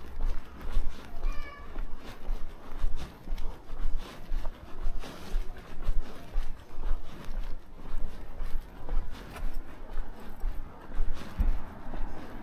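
Footsteps walk steadily on pavement.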